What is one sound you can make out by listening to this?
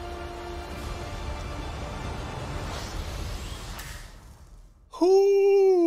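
Trailer music plays, then fades out.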